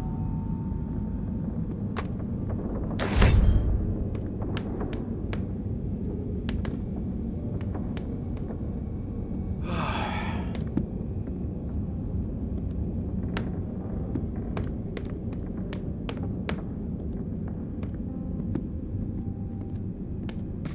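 Footsteps thud and creak on wooden floorboards.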